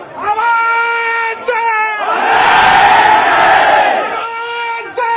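A man shouts a long drawn-out slogan close by.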